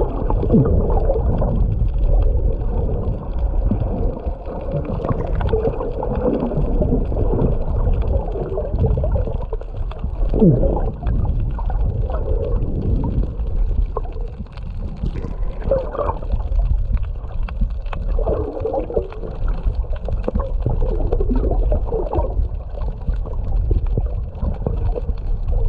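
Water rushes and bubbles steadily around a swimmer underwater.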